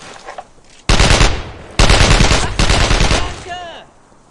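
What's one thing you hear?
A submachine gun fires loud rapid bursts close by.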